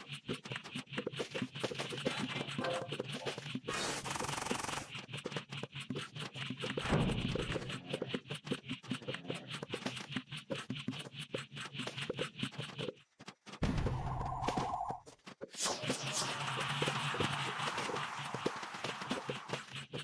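Rapid soft popping shots fire over and over in a video game.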